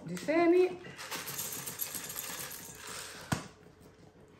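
Seeds rattle and pour from a plastic container into a glass bowl.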